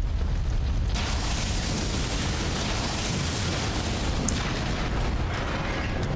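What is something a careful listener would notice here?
A heavy weapon crashes against stone, scattering debris.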